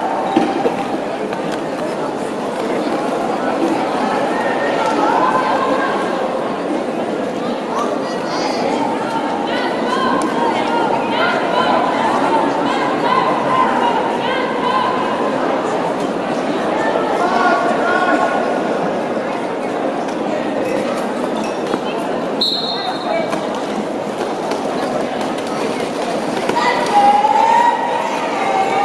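Roller skate wheels rumble and scrape on a hard floor.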